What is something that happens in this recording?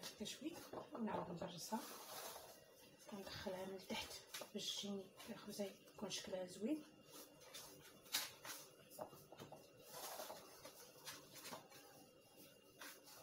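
Hands press and pinch soft dough.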